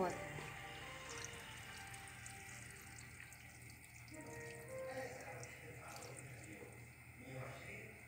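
Water pours into a pot of stew.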